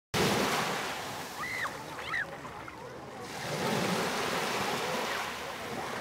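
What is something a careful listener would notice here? Small waves wash up over sand and hiss as they draw back.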